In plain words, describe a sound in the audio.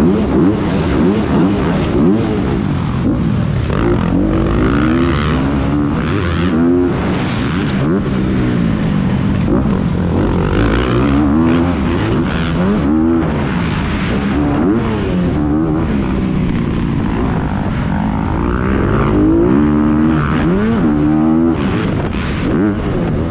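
A dirt bike engine roars up close, revving up and down through gear changes.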